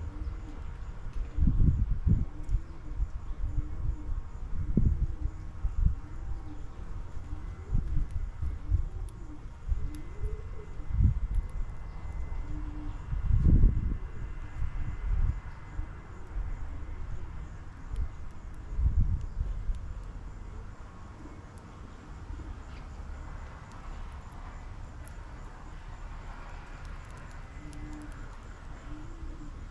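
Small birds peck and rustle in seeds close by.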